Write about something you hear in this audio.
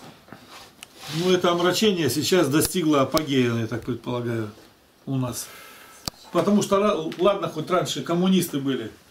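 A middle-aged man speaks calmly and steadily nearby.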